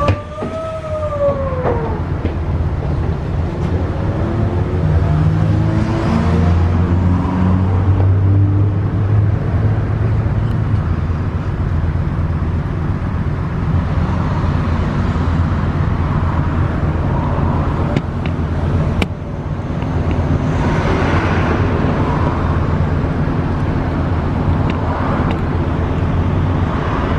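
A bus engine hums and whines steadily from inside the cabin.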